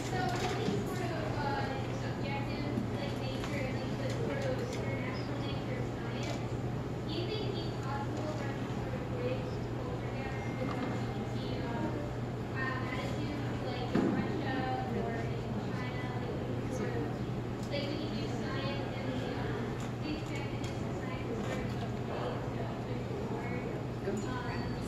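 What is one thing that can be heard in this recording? A man speaks calmly into a microphone over loudspeakers in a large room.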